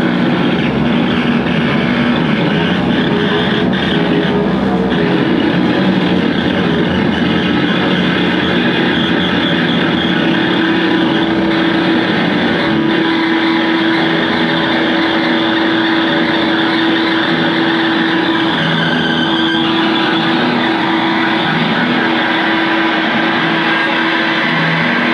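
Loud distorted electric guitars play a droning, noisy piece through amplifiers in an echoing hall.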